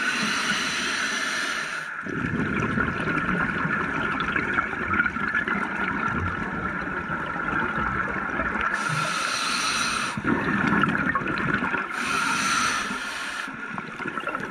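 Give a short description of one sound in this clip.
Air bubbles from a diver's breathing gear gurgle and hiss in bursts underwater.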